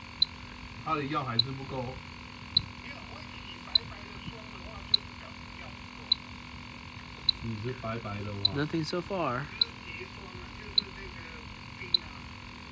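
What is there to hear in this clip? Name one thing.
An electronic meter beeps in short, evenly spaced chirps.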